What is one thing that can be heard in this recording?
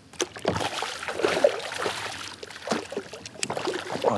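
A fishing reel clicks as line is reeled in.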